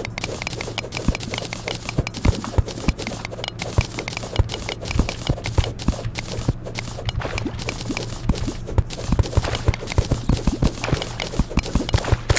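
Quick digging clicks strike rock again and again.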